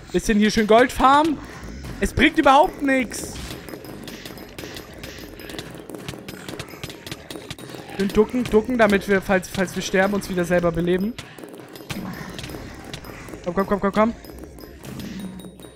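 Game weapons fire in rapid clicking bursts.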